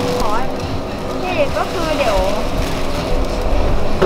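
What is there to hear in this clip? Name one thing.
A knife slices through a plastic bag.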